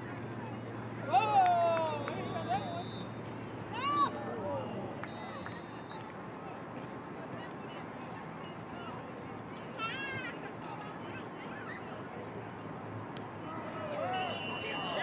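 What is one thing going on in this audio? Young players shout across an open field.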